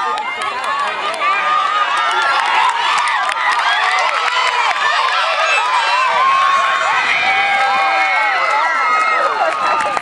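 A crowd of young spectators cheers and shouts outdoors.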